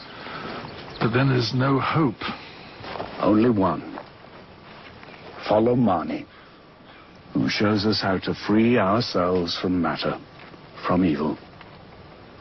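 A man speaks in a tense, low voice close by.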